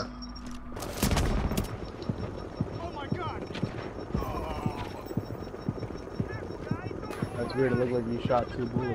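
Gunshots fire in rapid bursts nearby.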